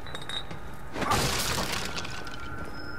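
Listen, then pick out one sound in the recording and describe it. A loud blast bursts and sends debris clattering.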